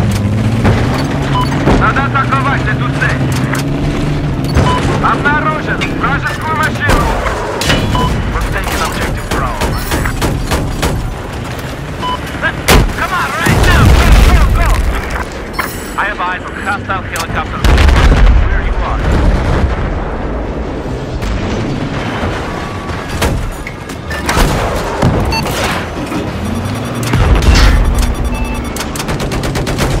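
A vehicle's 25 mm cannon fires bursts.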